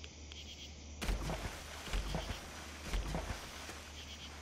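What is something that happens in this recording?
Footsteps thud on soft ground.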